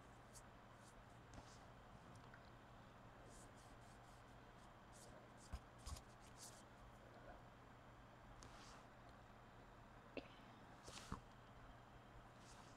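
A paintbrush softly brushes and taps against a hard curved surface.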